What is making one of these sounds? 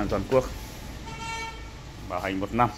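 An appliance beeps a short tone.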